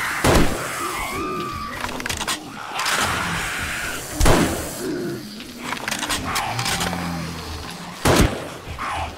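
A rifle fires loud single shots that ring out.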